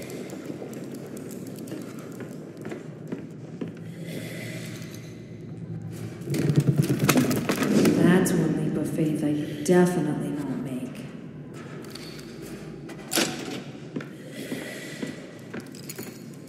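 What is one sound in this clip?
Footsteps knock on wooden planks.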